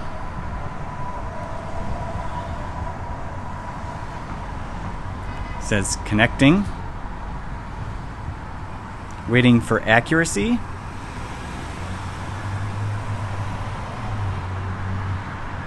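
A car drives slowly past nearby.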